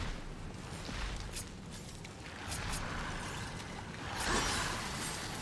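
Metal blades clash and strike.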